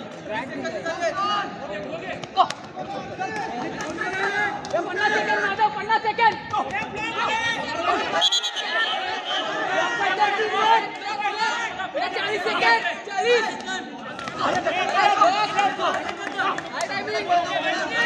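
A large crowd of spectators shouts and cheers.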